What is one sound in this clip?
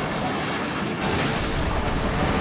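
Rough water churns and splashes.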